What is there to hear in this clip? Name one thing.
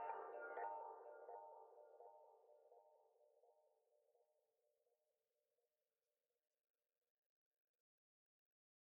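A synthesizer plays a swirling electronic chord that slowly fades away.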